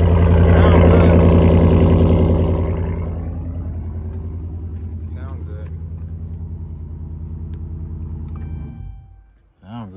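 A car engine idles loudly with a deep rumble from the exhaust, then shuts off.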